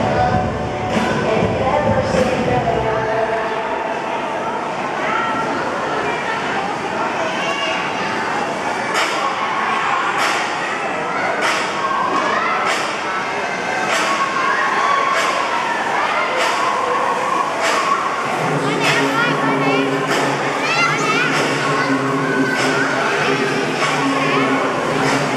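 Many children chatter and shout nearby in a large echoing hall.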